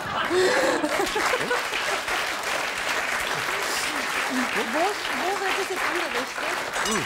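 A middle-aged man talks with animation into a microphone.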